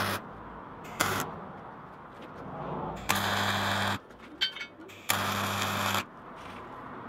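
An arc welder crackles and buzzes in short bursts.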